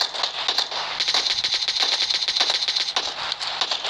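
Rapid automatic rifle fire rattles in quick bursts.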